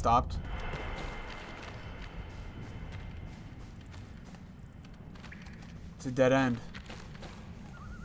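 Footsteps tread over rough ground.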